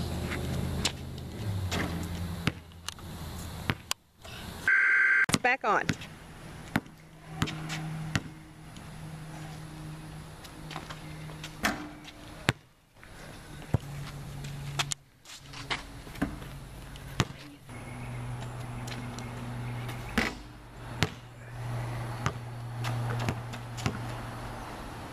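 A basketball bounces on concrete.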